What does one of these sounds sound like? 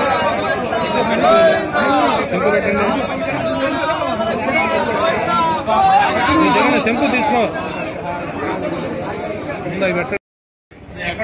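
Several men talk and chatter nearby.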